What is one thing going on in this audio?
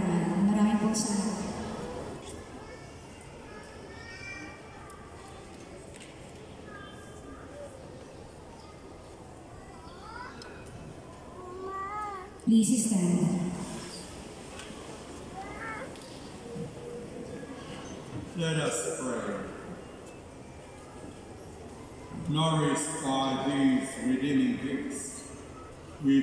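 A crowd of voices calls out loudly together in a big echoing hall.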